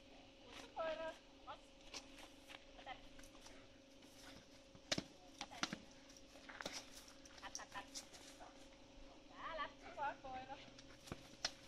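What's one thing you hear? A woman calls out to a dog outdoors in a lively voice.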